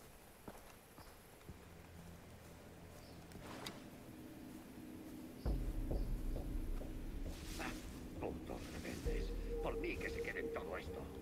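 Footsteps rustle through tall grass and bushes.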